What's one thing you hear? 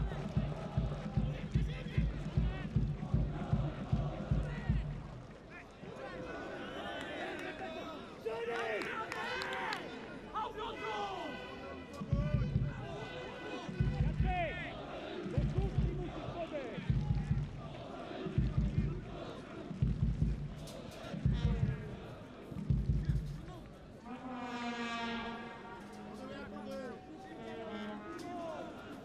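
A crowd murmurs in an open stadium.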